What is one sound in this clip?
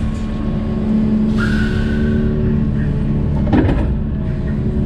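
Soil pours and thuds into a metal trailer bed.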